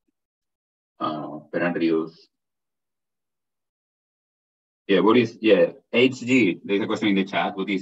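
A man speaks calmly through an online call microphone, in short bursts with pauses.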